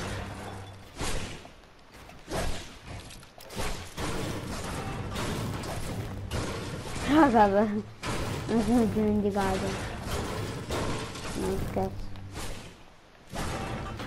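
A pickaxe strikes a wall with sharp thuds, again and again.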